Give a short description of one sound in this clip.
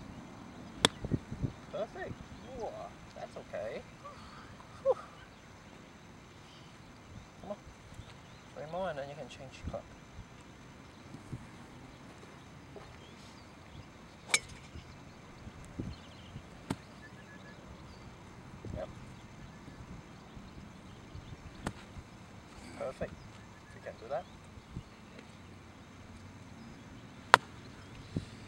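A golf club sharply strikes a ball outdoors.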